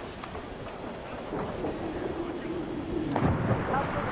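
A person dives into water with a splash.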